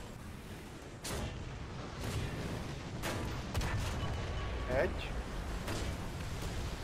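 Tank cannon shots boom and crack one after another.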